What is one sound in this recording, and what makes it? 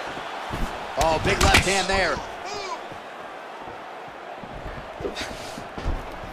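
A kick lands with a sharp thud.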